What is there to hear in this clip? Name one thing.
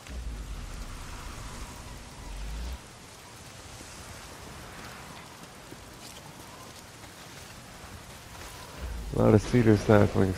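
Footsteps rustle through low brush and grass.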